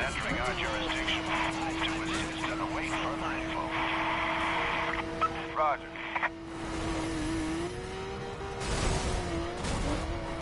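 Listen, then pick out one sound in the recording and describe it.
A car engine hums steadily at high speed.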